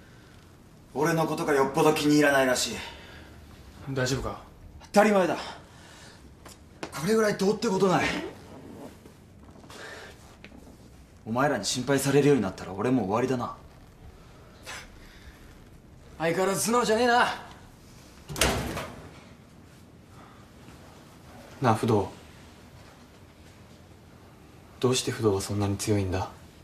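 A young man speaks tensely nearby.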